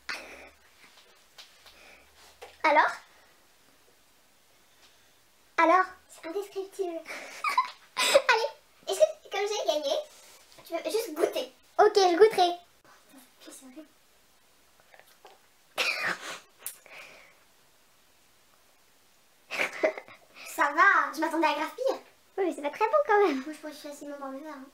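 A teenage girl talks cheerfully close by.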